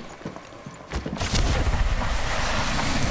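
A loud rushing whoosh of wind builds and holds.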